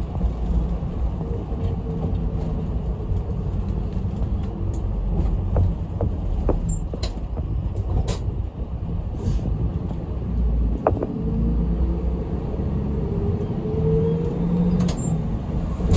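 A bus engine rumbles steadily from inside while driving.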